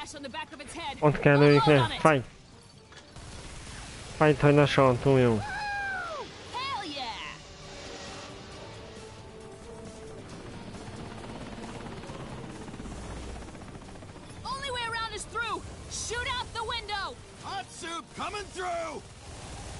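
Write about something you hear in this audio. A heavy rotary gun fires rapidly.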